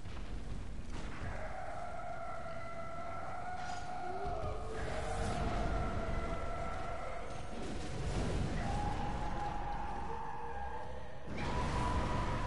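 Heavy blows land with sharp impacts.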